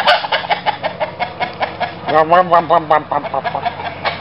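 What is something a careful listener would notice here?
Hens cluck close by.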